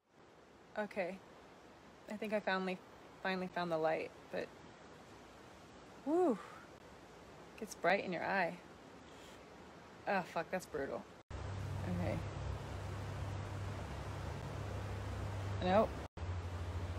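A young woman speaks softly and casually, close to a phone microphone.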